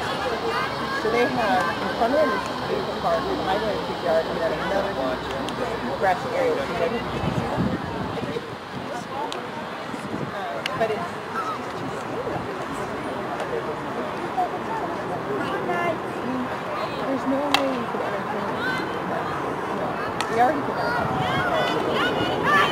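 Young women shout and call out to each other across an outdoor field.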